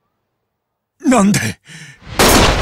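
A man shouts angrily.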